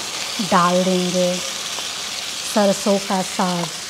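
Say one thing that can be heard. Food plops into a hot pan.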